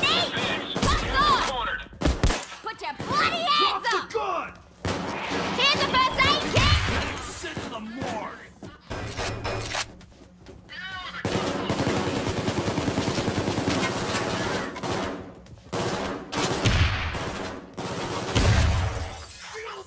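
Gunshots boom in short bursts.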